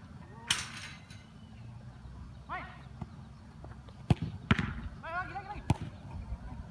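A football is kicked hard several times outdoors.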